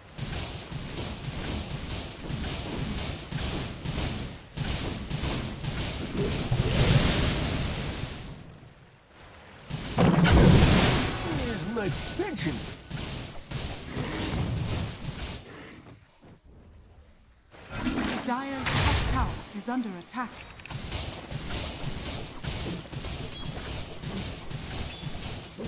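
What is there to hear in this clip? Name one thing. Game fighting sounds clash and crackle with bursts of magic.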